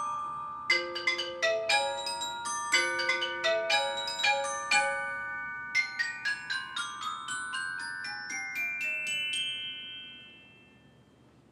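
An orchestra plays a run of bright, chiming notes that slowly fade.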